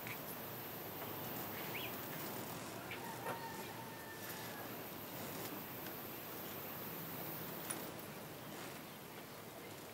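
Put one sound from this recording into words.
A crowd murmurs softly outdoors.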